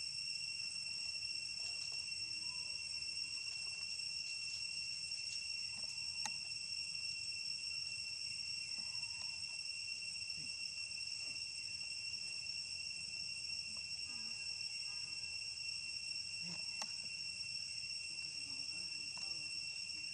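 A young monkey laps water from the ground.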